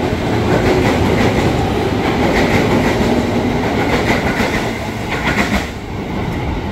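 A train rushes past with loud rattling wheels.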